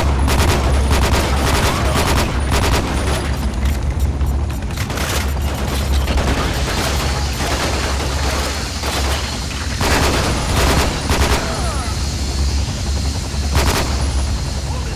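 A rifle fires bursts of gunshots that echo off rock.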